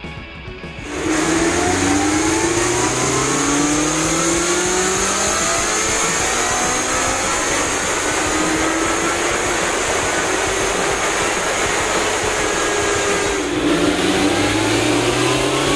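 A motorcycle engine roars loudly, revving up again and again.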